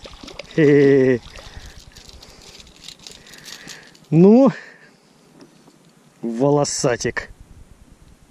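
A fishing reel whirs in short bursts as line is wound in.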